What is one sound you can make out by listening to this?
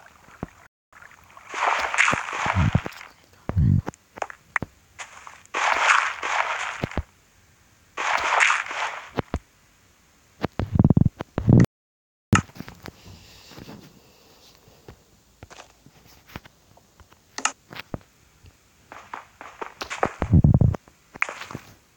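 Dirt crunches in short bursts as blocks are dug out.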